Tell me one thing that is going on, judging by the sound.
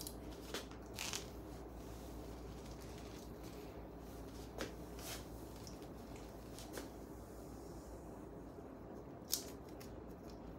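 A comb swishes through long hair.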